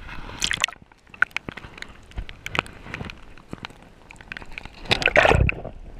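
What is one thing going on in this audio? Water sloshes and gurgles around, heard from under the surface.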